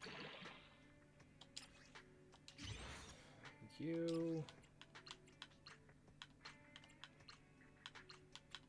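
Menu sounds click and chime in a game.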